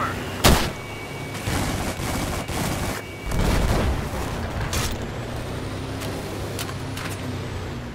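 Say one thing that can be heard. Gunshots crack nearby in sharp bursts.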